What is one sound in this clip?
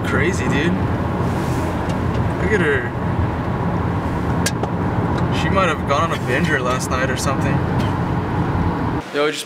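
A car drives along a road with a steady rumble of tyres and engine.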